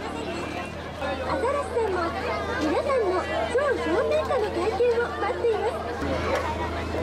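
Young children talk excitedly close by.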